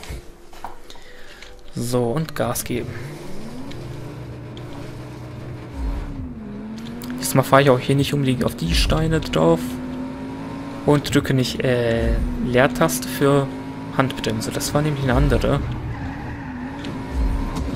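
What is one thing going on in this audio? A car engine roars and revs higher as it speeds up.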